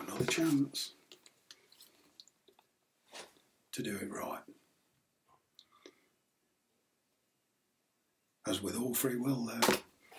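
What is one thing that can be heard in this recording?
Cards shuffle and rustle in a man's hands.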